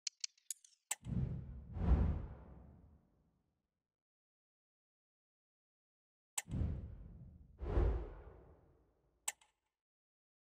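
A deep whoosh swells and fades away.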